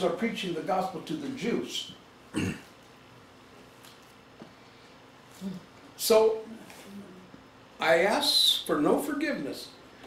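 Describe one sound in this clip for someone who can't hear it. An older man speaks with animation, pausing between phrases.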